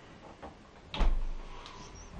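A fridge door thumps shut.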